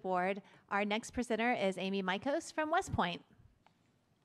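A woman speaks through a microphone in a large room.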